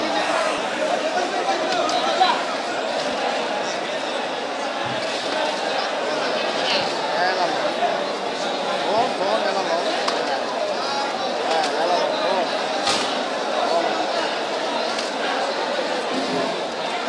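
A crowd of men talks and calls out all at once, close by.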